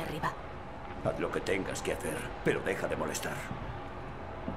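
A man answers gruffly and dismissively.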